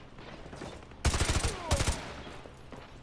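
A rifle fires in quick bursts of loud shots.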